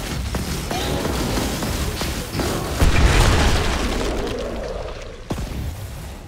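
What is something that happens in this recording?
A flamethrower roars in loud bursts.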